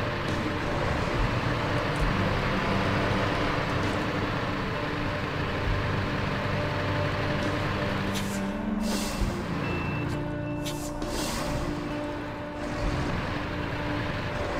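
A heavy truck engine rumbles and strains at low speed.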